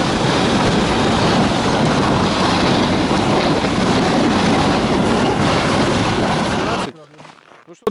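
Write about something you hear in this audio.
A sled hisses over packed snow.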